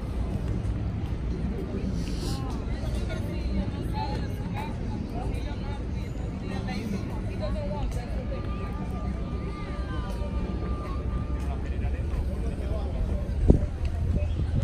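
People chat quietly in the distance.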